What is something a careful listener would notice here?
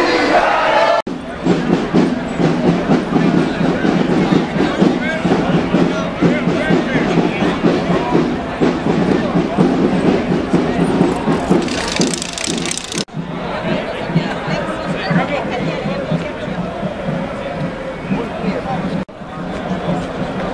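A crowd of people chatter and shout outdoors.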